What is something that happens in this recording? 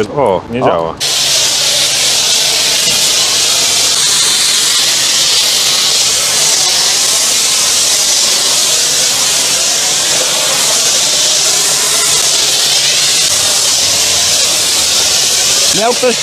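A pressure washer hisses loudly, spraying foam.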